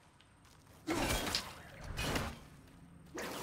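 A loud magical blast bursts with a crackling roar.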